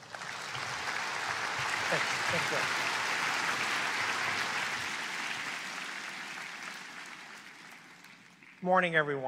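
An audience applauds in a large hall, then fades.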